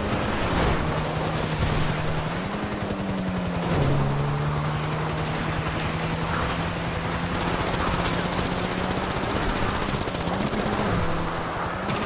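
Tyres rumble and bump over rough ground.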